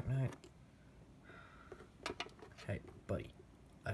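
Fingers handle a small brass case with light metallic clicks.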